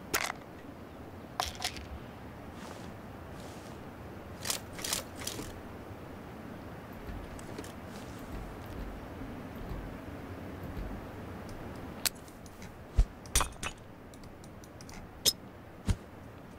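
Sharp gunshots crack nearby, several times.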